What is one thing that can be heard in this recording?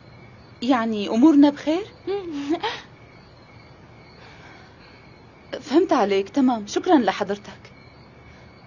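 A woman speaks into a phone, close by.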